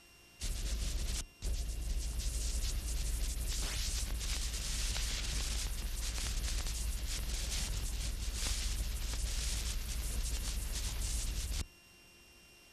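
Wind blows hard across the microphone outdoors.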